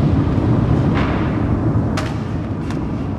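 A rubber tyre drops and thuds onto a hard floor.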